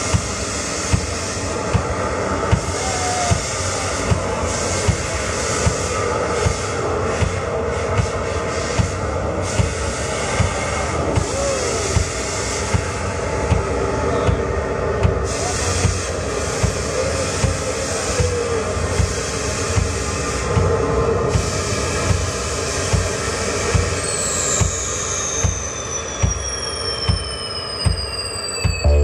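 A live band plays loudly through loudspeakers.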